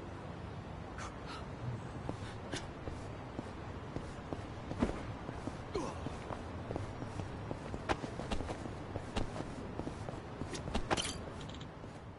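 Footsteps click on a hard tiled floor.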